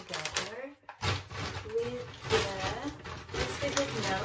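A paper bag rustles loudly.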